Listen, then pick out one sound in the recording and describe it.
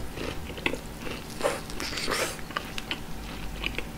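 Meat crackles as a gloved hand tears and picks it up.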